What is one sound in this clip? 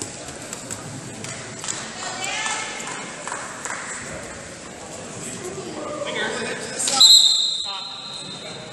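Wrestling shoes squeak and scuff on a mat in a large echoing hall.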